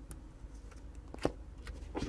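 Foil card packs crinkle as a hand touches them.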